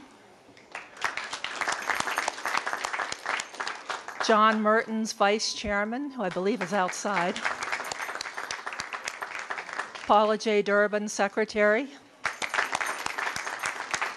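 An audience claps steadily in a room.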